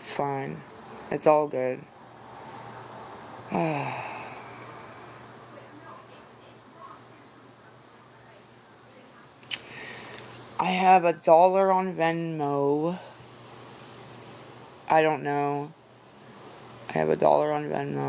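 A middle-aged woman talks casually into a nearby microphone, in short bursts with pauses.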